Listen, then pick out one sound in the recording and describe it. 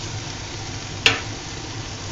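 A metal spoon clinks against a pan.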